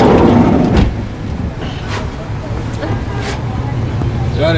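Vehicles rumble along a wet road.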